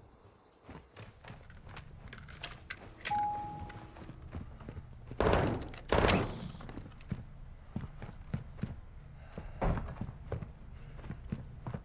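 Footsteps thud and tap quickly across a floor.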